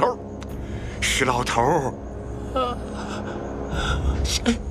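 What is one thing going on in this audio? An elderly man speaks weakly and hoarsely.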